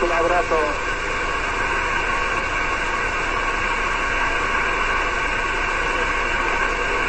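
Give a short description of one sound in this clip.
A radio receiver hisses with steady static through its loudspeaker.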